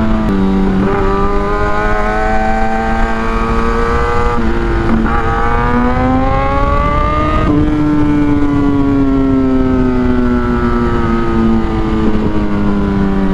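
A motorcycle engine hums and rises and falls in pitch as the rider shifts gears.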